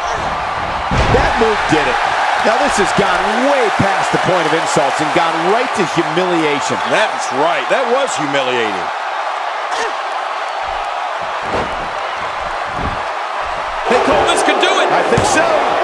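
A body thuds onto a wrestling mat.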